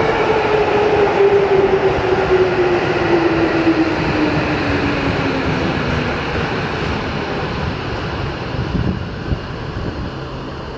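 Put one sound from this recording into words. A train rumbles into an underground station and slows down.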